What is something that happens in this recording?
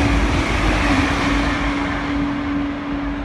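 A train rushes past on the tracks and quickly fades away.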